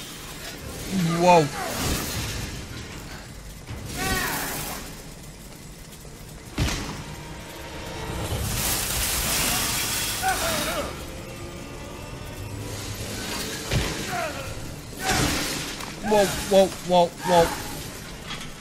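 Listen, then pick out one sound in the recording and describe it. A man grunts and yells in rage.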